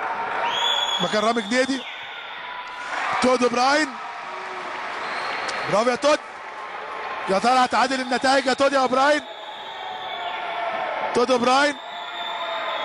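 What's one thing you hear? A crowd chants in rhythmic bursts in a large echoing hall.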